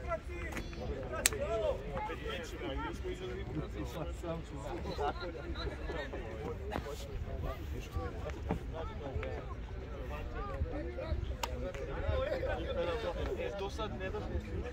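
Young players shout and call out across an open outdoor field.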